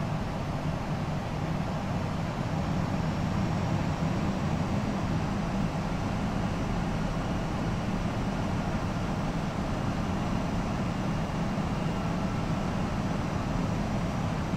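A jet airliner's engines and airflow roar steadily around a cockpit.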